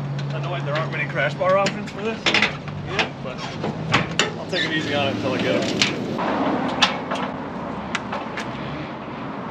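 Metal knocks and clanks on a trailer.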